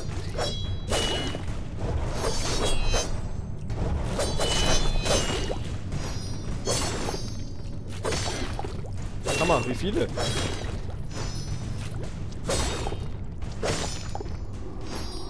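Heavy blows thud and crash against enemies.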